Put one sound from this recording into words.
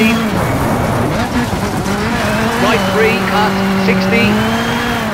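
A rally car engine roars steadily, rising and falling in pitch as it shifts gears.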